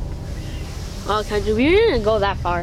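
A boy speaks close by outdoors.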